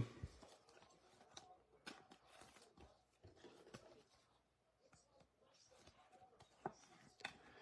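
A stiff plastic card sleeve clicks and rustles softly in hands.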